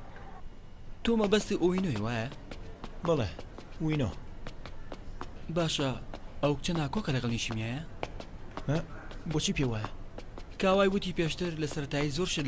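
A second young man answers casually.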